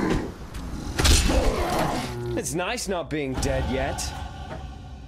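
A bright magical burst whooshes and rings out.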